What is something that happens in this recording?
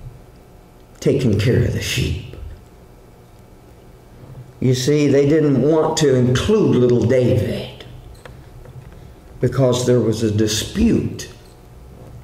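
An older man speaks calmly into a microphone, in short phrases with pauses.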